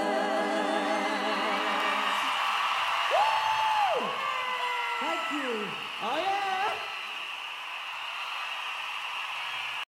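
A large outdoor crowd cheers and screams.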